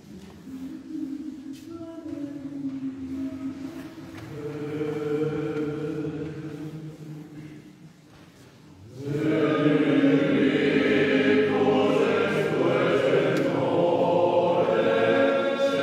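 A male choir sings together in close harmony, echoing in a large hall.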